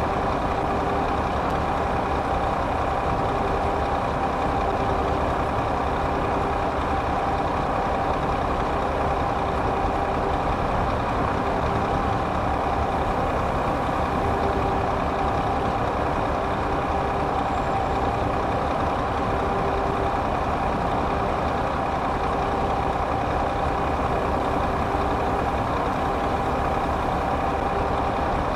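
Tyres roll with a steady roar on the road.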